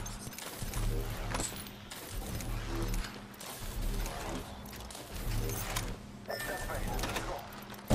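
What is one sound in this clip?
Menu items click as loot is picked up.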